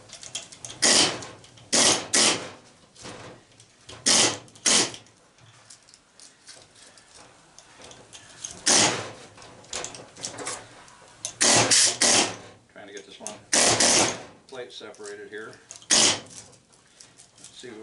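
Metal clinks as a motor housing shifts on a steel table.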